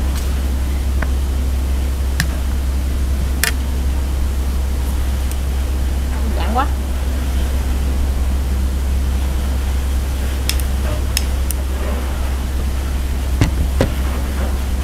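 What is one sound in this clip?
A spoon clinks against plates.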